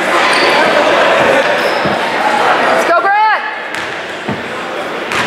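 A crowd of spectators chatters in a large echoing gym.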